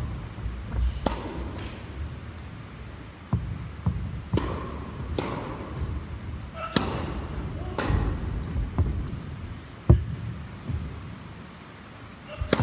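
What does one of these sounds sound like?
A tennis racket strikes a ball with sharp pops in a large echoing hall.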